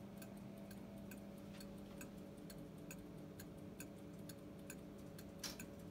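A clock movement ticks quickly and steadily, close by.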